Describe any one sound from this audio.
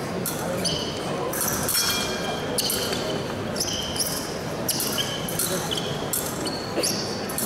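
Shoes squeak sharply on the floor as fencers lunge and step.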